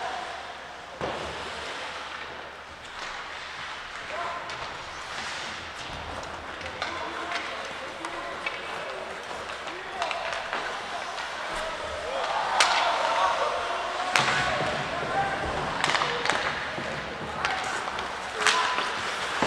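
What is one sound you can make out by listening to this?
Hockey sticks clack against a puck now and then.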